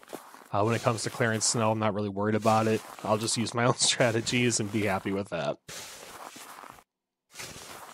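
A shovel scrapes and pushes through snow.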